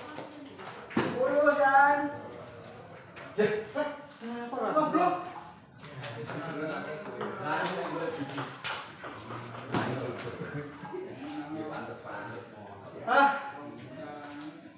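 Men talk and call out nearby.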